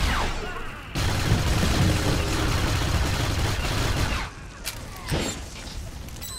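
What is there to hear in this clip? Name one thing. Electronic blasts and clashing combat effects ring out loudly.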